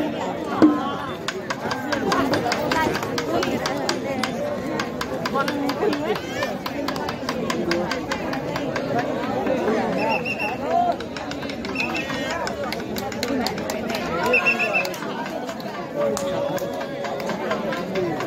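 Drums beat rapidly.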